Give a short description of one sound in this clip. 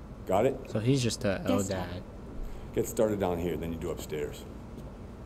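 A middle-aged man speaks gruffly.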